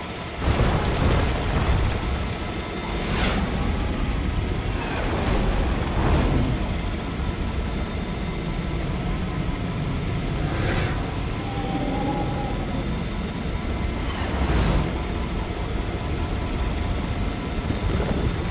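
Coins chime as they are picked up.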